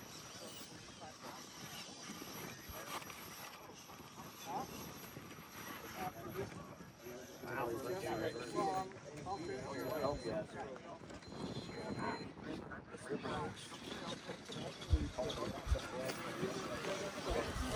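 A small electric motor whines as a toy car crawls over rock.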